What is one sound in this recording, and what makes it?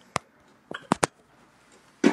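A phone clicks and rustles as it is handled.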